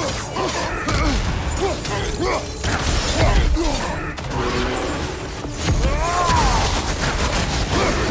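Heavy blows and weapons clash in a fight.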